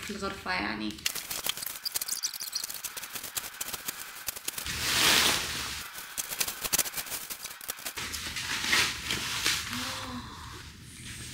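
Bubble wrap crinkles and rustles as it is handled.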